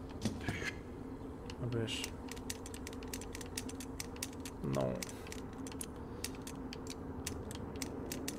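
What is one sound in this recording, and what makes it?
A combination padlock's dials click as they turn.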